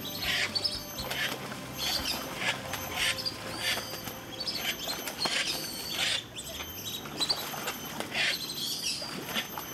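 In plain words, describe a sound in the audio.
Ducks splash and flap their wings in water.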